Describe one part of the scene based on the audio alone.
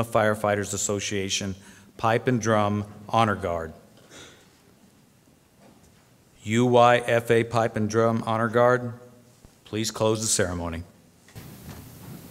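A middle-aged man speaks calmly into a microphone with pauses.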